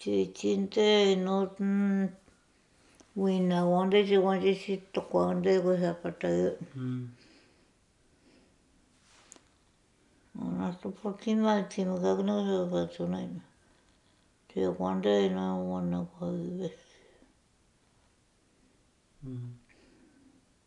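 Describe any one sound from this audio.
An elderly woman speaks calmly and close by, in short bursts with pauses.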